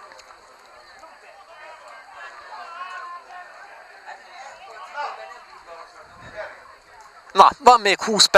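Men murmur and chat quietly outdoors in the background.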